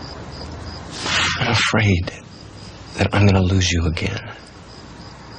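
A man speaks in an intense, low voice nearby.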